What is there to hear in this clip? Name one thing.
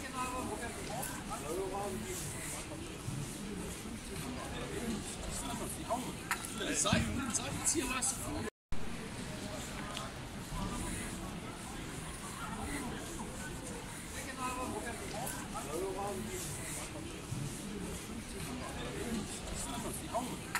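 A crowd of men and women chatters outdoors in the background.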